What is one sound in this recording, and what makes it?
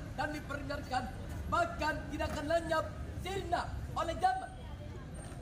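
A group of young people shout a chant together outdoors.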